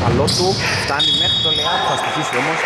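A referee's whistle gives a short, shrill blast.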